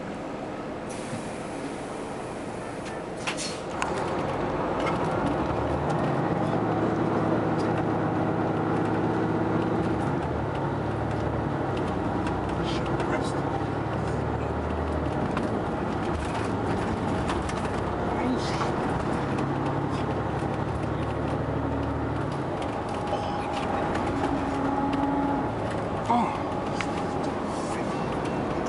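Tyres roll on the road beneath the bus.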